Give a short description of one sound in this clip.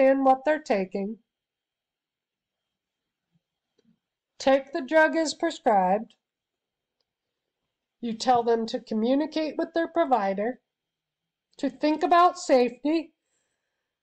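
A woman speaks calmly in short phrases through an online call.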